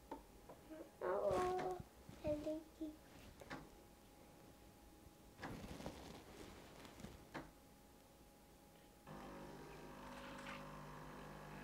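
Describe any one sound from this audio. A coffee machine's pump buzzes and hums.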